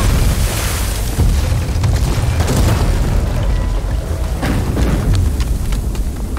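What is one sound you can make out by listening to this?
Ice and rock crack and crash as a giant frozen figure moves.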